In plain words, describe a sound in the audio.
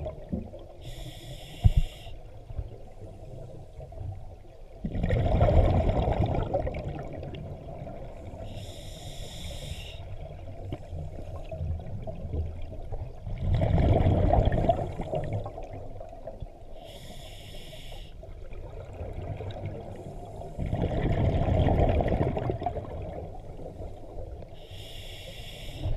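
A scuba diver's regulator hisses with each inhale.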